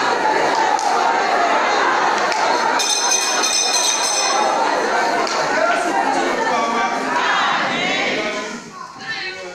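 A crowd of men and women raise their voices loudly together in an echoing hall.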